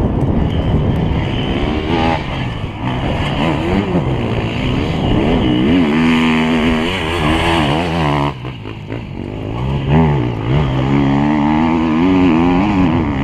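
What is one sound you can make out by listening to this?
An enduro dirt bike engine revs hard, its pitch rising and falling through the gears.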